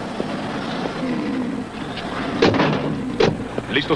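A car door opens and shuts.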